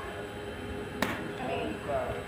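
A bat hits a softball with a sharp crack.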